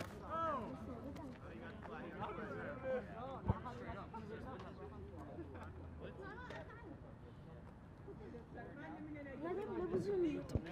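Several men call out to each other from a distance outdoors.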